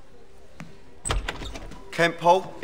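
A door opens with a thud.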